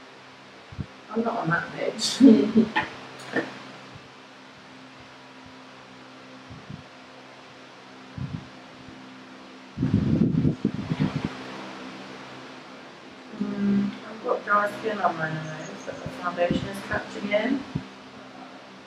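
A young woman talks casually close by.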